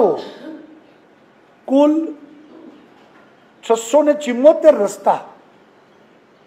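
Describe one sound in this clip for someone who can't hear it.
A middle-aged man speaks calmly in short phrases, reading out.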